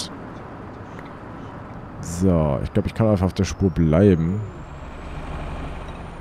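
A bus engine hums low and steady while driving.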